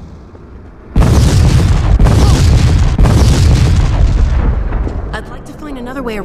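A deep, loud rumbling roar booms overhead.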